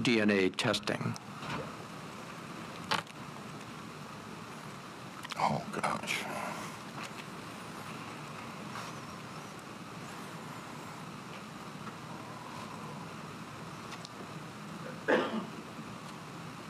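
An elderly man speaks briefly and calmly into a microphone.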